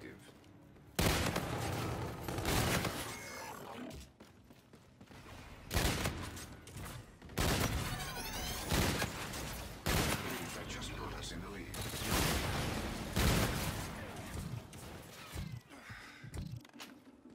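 Rifle gunfire crackles in loud rapid bursts.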